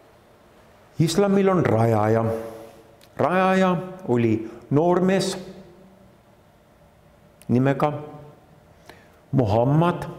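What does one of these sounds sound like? A middle-aged man speaks calmly and thoughtfully into a close microphone, with pauses.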